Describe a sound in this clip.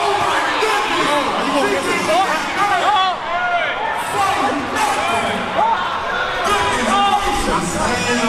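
A crowd talks and cheers loudly in a large echoing hall.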